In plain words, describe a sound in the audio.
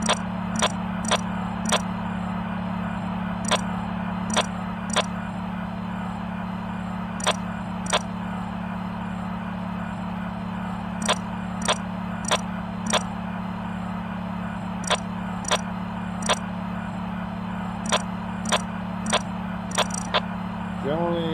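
Short sharp clicks sound again and again.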